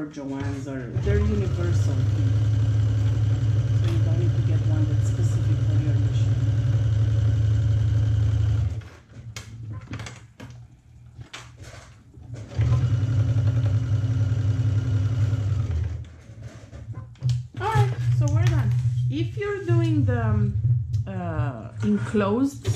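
A sewing machine runs with a steady, low hum, stopping and starting again.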